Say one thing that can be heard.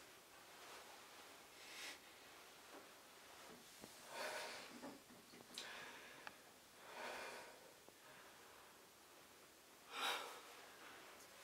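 A man sniffs deeply, close by.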